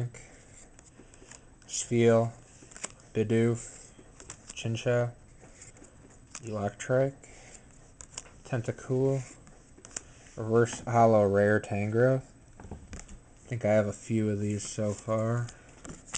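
Trading cards slide and flick against each other in a hand.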